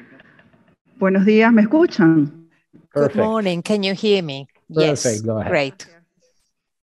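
A middle-aged man speaks calmly through an online call.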